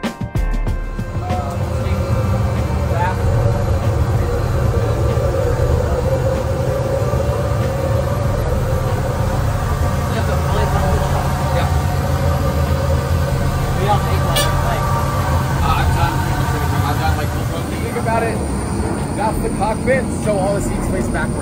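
A low, steady drone of aircraft engines fills the cabin.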